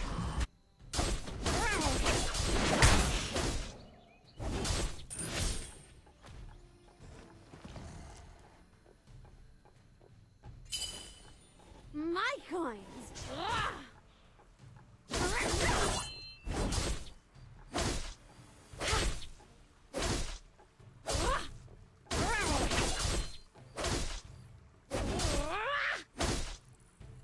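Sharp sword slashes and magic blasts burst out in quick succession.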